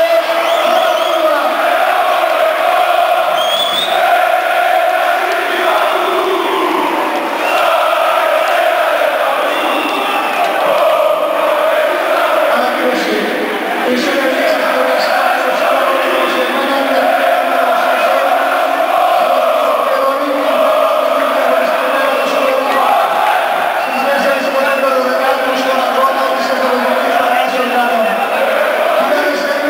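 A large crowd of fans sings and chants loudly in unison in a big stadium.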